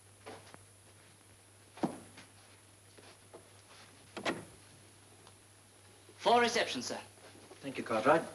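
Footsteps tread across a wooden floor.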